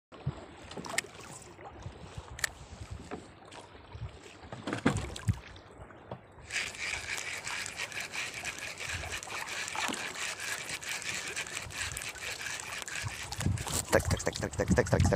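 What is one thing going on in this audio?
Waves slosh and slap against a small boat.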